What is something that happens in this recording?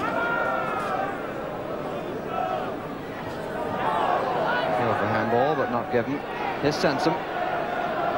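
A large crowd roars and chants steadily outdoors.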